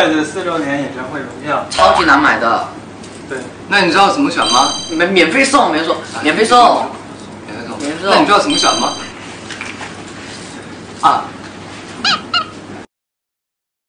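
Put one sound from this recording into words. Young men talk and laugh together with animation, close by.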